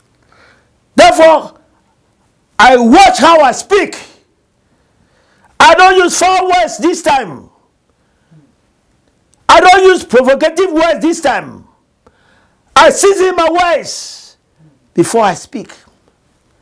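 A middle-aged man preaches loudly and with passion into a microphone, in short bursts with pauses.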